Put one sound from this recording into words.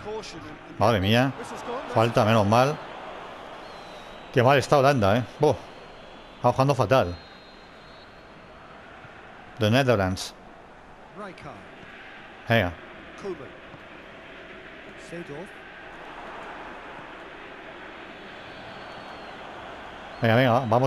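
A large stadium crowd murmurs and cheers steadily in the distance.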